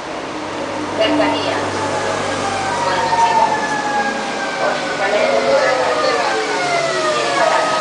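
Train brakes squeal with high, slowly falling tones.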